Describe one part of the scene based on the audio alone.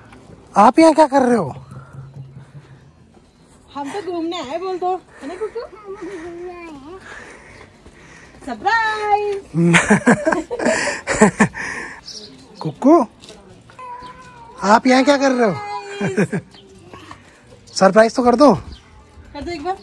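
A woman talks playfully to a toddler close by.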